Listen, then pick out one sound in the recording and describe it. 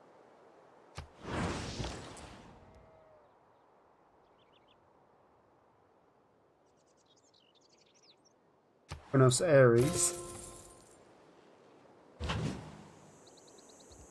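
Short swooshing game sound effects play as the view jumps.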